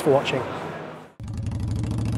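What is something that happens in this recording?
A man speaks close by, then breaks off.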